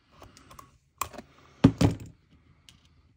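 Small objects knock against a tabletop.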